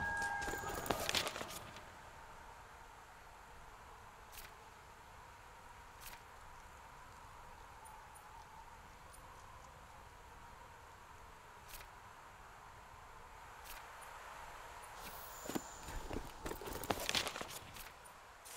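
A paper map rustles as it unfolds and folds shut.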